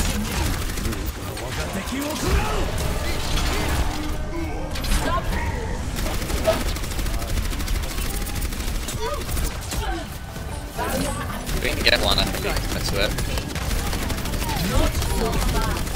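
Weapons fire in rapid bursts.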